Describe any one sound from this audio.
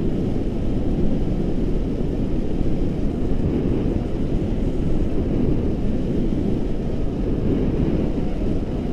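Strong wind rushes and buffets loudly against a microphone outdoors.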